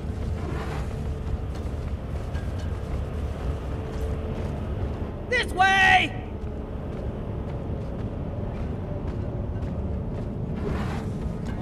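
An energy weapon fires with a steady low rumbling roar.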